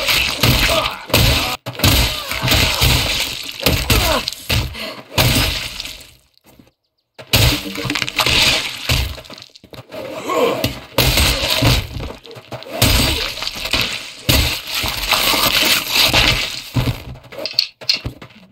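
Blades slash and strike with sharp, wet thuds.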